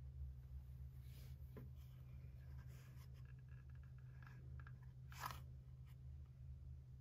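Paper rustles softly as pages are handled.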